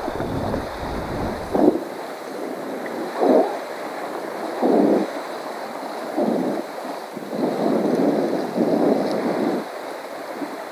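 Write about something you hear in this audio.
Small waves slosh and lap close by.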